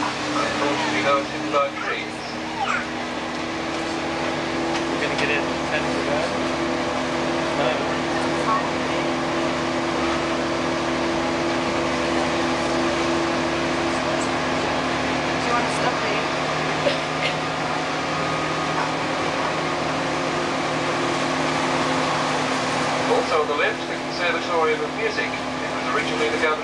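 A bus engine hums steadily as the bus drives.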